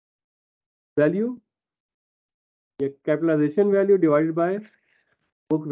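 A man speaks calmly through an online call microphone, with pauses.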